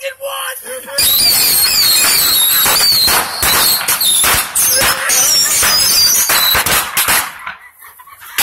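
Firecrackers crackle and bang loudly in rapid bursts.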